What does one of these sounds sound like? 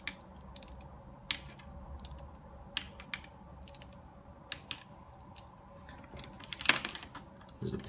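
A plastic pen clicks and taps lightly against fingers as it is spun.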